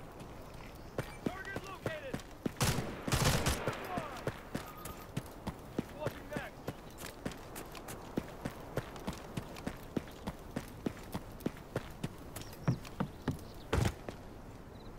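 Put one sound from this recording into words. A gun fires a burst of loud shots.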